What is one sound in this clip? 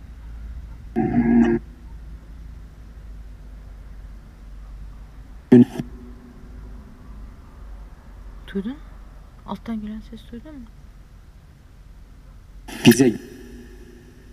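A middle-aged man asks short questions quietly, close by.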